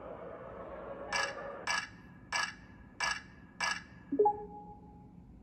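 Heavy metal gates clank several times and creak open.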